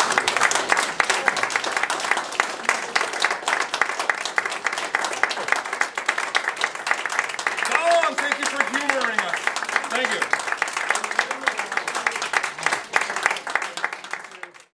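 An audience claps and applauds in an echoing room.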